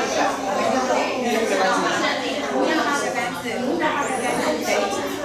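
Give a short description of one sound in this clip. A woman speaks steadily through a microphone in a room with a slight echo.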